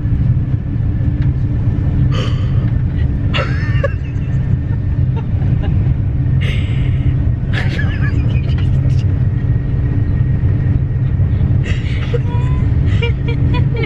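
Young women laugh and giggle close by.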